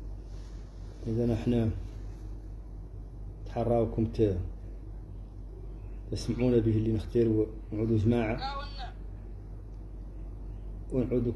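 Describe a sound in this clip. An elderly man speaks calmly and slowly, close to the microphone, with long pauses.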